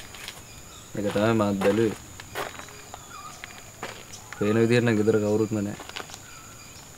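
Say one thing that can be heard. A young man speaks nearby.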